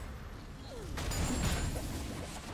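A magical whoosh and crackle bursts out.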